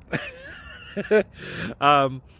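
A man laughs, close up.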